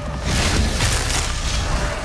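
Flesh squelches and splatters as a monster is torn apart.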